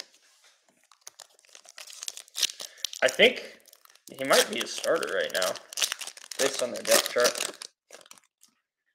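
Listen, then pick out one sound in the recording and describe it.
Fingers crinkle and tear open a foil wrapper.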